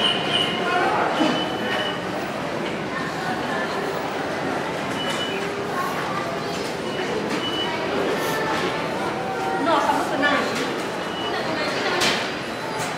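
Footsteps shuffle across a hard floor.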